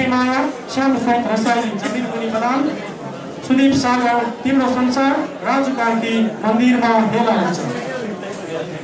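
A group of people sing together loudly in a large echoing hall.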